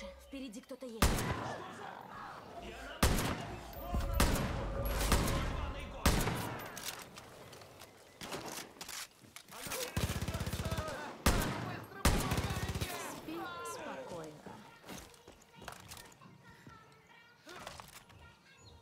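Loud rifle shots crack out one at a time.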